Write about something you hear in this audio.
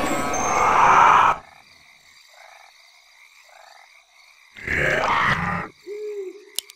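Weapons clash and spells burst in a noisy fight.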